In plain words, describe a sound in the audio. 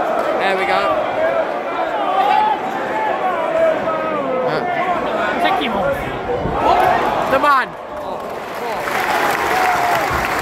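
A stadium crowd chants and sings loudly nearby.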